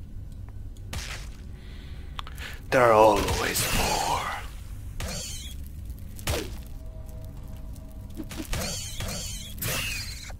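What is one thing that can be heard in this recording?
A giant spider screeches and hisses.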